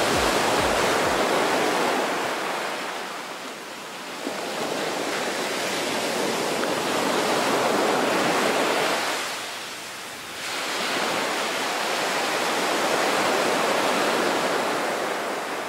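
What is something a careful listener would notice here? Water rushes and splashes against a boat's hull.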